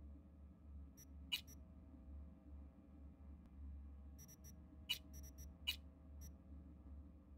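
Menu interface clicks and blips sound in short bursts.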